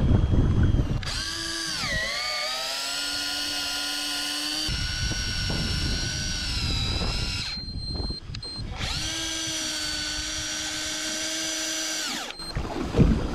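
An electric fishing reel whirs steadily as it winds in line.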